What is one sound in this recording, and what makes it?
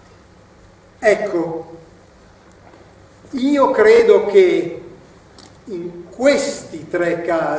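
A middle-aged man speaks expressively in a quiet, echoing hall, with pauses between phrases.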